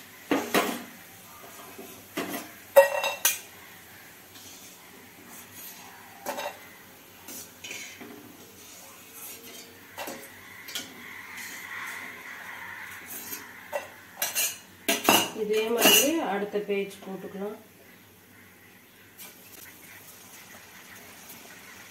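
Hot oil sizzles and bubbles in a pan.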